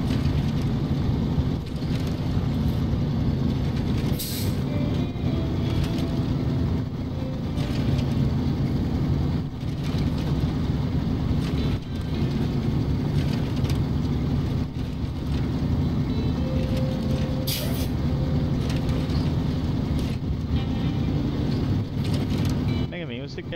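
Tyres crunch and rattle over a rough gravel road.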